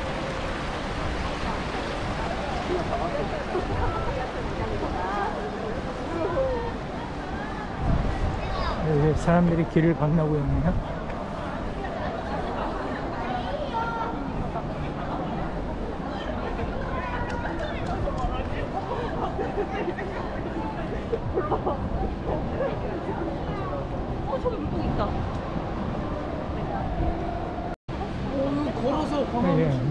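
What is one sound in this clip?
Many people chatter nearby outdoors.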